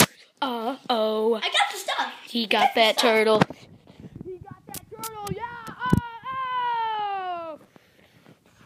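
A young child shouts and sings excitedly close by.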